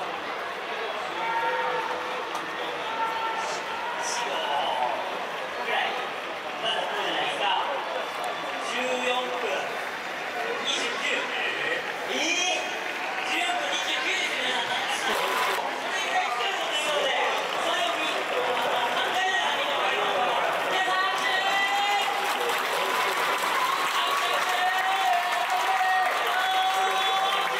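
A crowd murmurs and calls out across a large open stadium.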